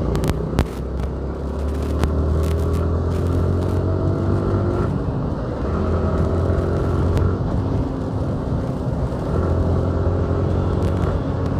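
Wind rushes past a moving motorcycle.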